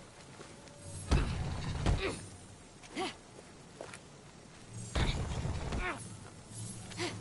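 A heavy stone block grinds and scrapes as it slides along the ground.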